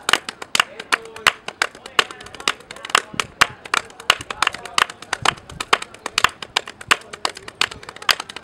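Hands slap against bare skin in quick, uneven smacks.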